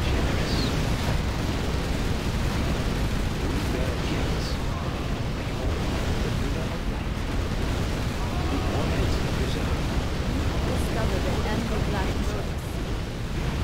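Explosions boom and rumble continuously.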